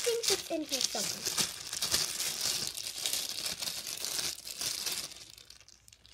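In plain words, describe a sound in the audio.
Clothing rustles loudly right against the microphone.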